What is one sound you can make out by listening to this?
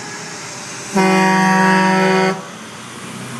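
A truck sounds a loud, steady air horn.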